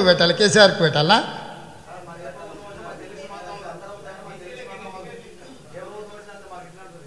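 A man speaks into a microphone in a relaxed, cheerful voice.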